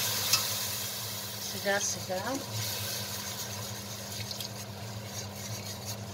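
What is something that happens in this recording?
A metal whisk scrapes and clinks against a pan.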